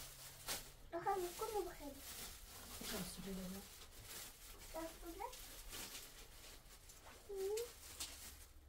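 A young girl speaks softly nearby.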